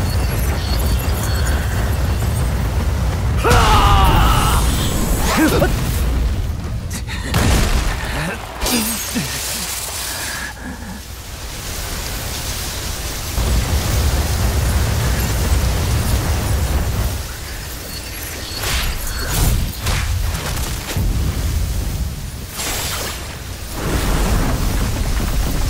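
Fire roars loudly.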